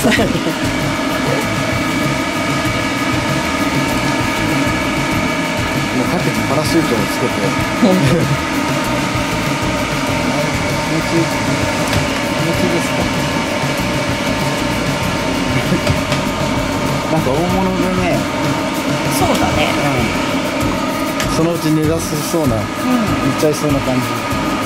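A hair dryer blows steadily close by.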